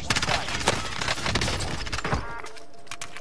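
Rapid gunshots ring out in quick bursts.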